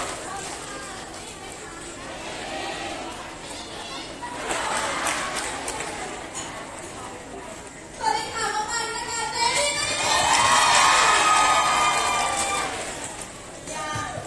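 A crowd cheers and screams.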